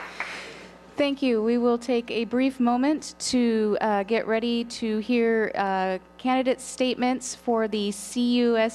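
A woman speaks calmly into a microphone, heard over a loudspeaker.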